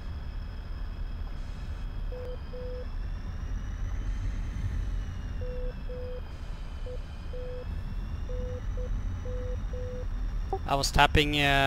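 A jet engine whines steadily at idle.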